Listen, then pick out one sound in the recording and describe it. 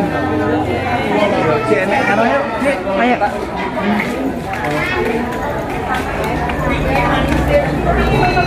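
Several people chatter in the background outdoors.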